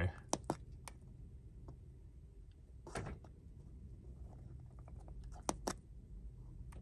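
A plastic button clicks several times.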